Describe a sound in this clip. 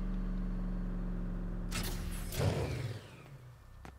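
A vehicle engine hums with a low steady drone, then powers down.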